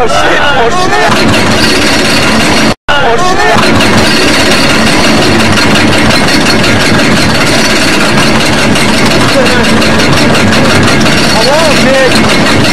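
A roller coaster rattles and clatters loudly along its track.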